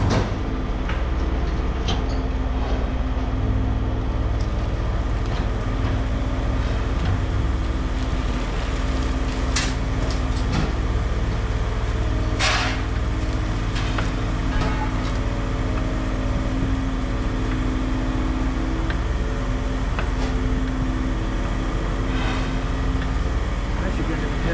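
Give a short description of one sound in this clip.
Scrap metal clanks and rattles as it is moved.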